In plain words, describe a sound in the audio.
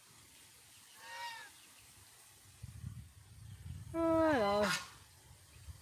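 A rooster crows.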